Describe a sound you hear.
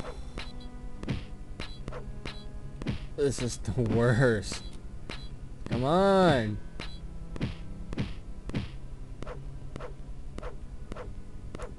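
A sword swishes through the air in a retro computer game.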